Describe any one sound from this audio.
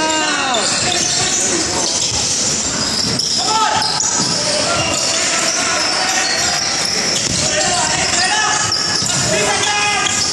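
Sneakers squeak sharply on a hard court floor, again and again.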